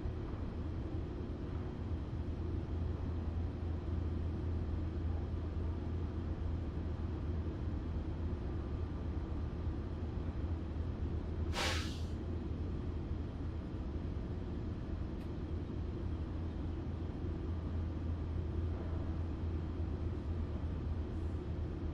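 A train hums and rumbles steadily from inside a carriage.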